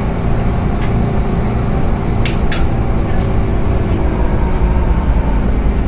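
A bus engine rumbles steadily as it drives.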